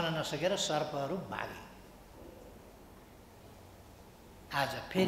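An elderly man speaks calmly into microphones, pausing briefly.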